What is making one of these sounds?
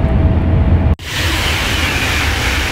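Wind rushes loudly past a speeding train.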